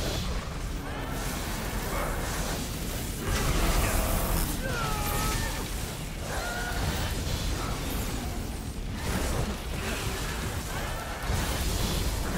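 Thunder cracks and booms as lightning strikes.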